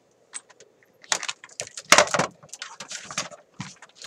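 A plastic unit knocks against a table.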